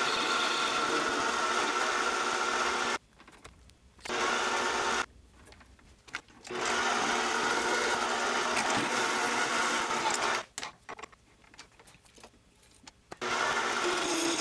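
A lathe motor runs with a steady whir, stopping and starting again several times.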